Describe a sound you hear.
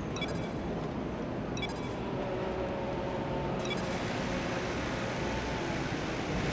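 A racing car engine idles with a steady low rumble.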